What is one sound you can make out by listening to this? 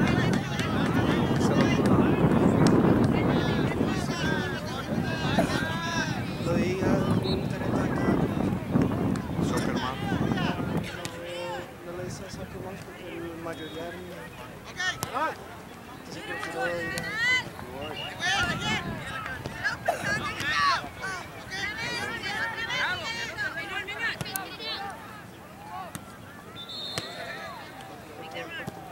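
Men and women on the sidelines shout and cheer from a distance, outdoors.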